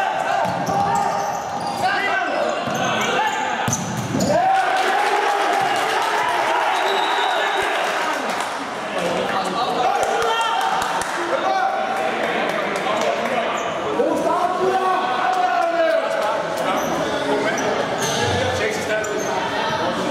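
A futsal ball thuds as players kick it in an echoing hall.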